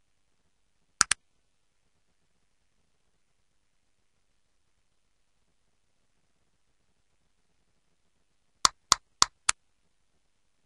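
A soft click sounds several times in quick succession.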